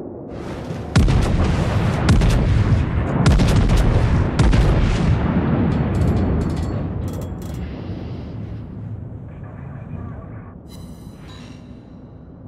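Shells explode with heavy, rumbling blasts.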